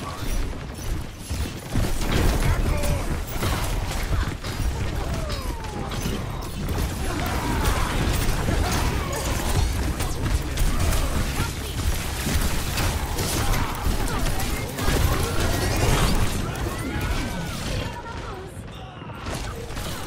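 Gunfire and energy blasts crack rapidly in a game battle.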